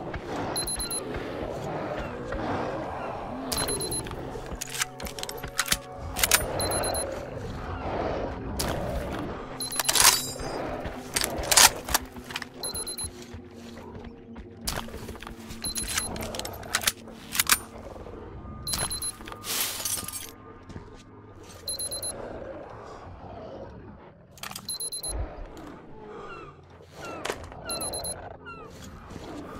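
A character swaps between weapons with metallic clicks.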